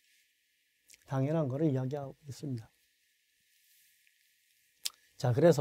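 A man lectures clearly into a microphone in short phrases.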